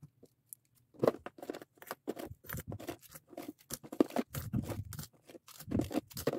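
Plastic bead keychains clatter onto a table.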